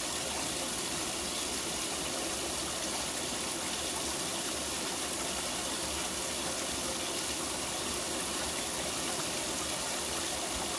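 Water gushes and splashes steadily into a filling tub.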